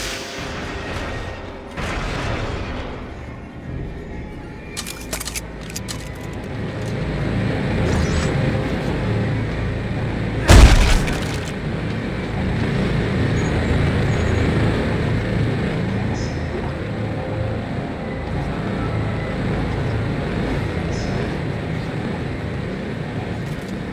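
Heavy boots clank on metal floors.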